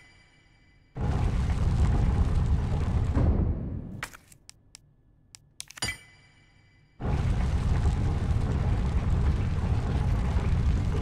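A heavy stone mechanism rumbles and grinds.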